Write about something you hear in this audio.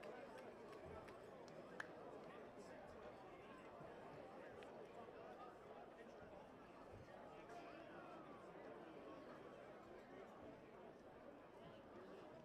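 A large crowd murmurs and chatters steadily.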